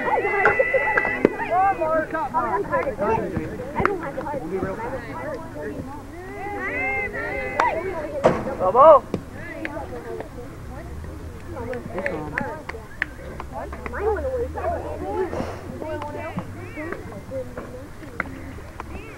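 Young children shout and chatter outdoors nearby.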